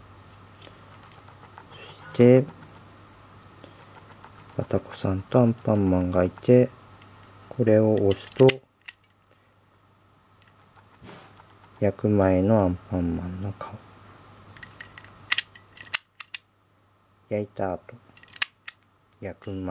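A plastic case clicks and rattles as it is handled.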